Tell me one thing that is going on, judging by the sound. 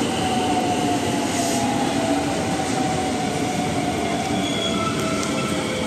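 A train rumbles along the tracks.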